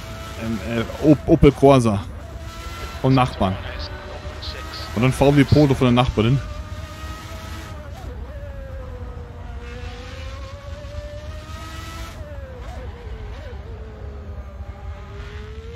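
A racing car engine whines steadily, rising and falling in pitch.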